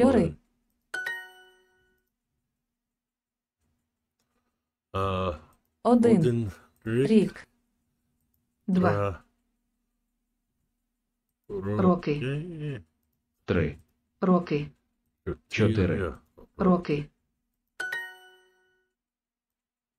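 A short bright chime rings twice.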